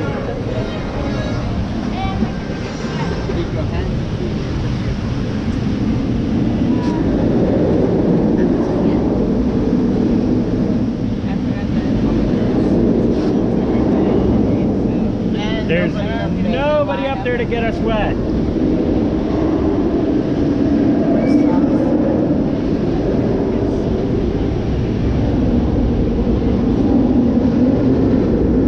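Water rushes and splashes around a moving boat throughout.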